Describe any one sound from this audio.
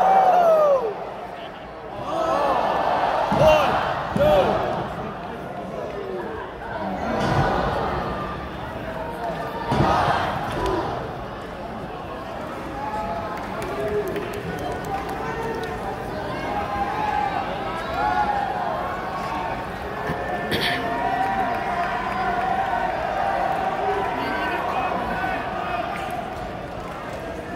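A large crowd cheers and shouts in a large arena.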